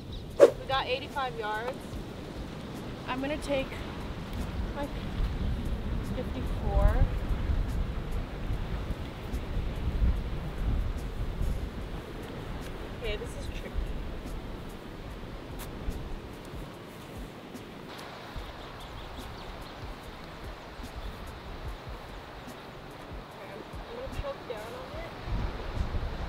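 A young woman talks calmly nearby.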